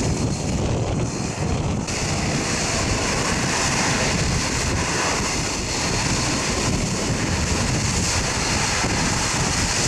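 Turboprop engines roar loudly as a plane rolls along a runway.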